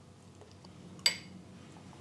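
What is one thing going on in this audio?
A fork clinks against a bowl.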